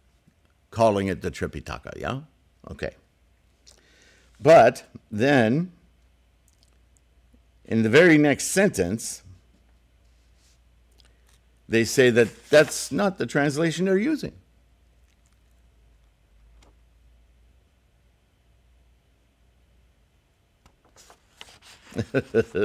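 An elderly man speaks calmly and slowly in short phrases, close to a microphone.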